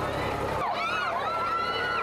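A crowd of young people cheers and shouts outdoors.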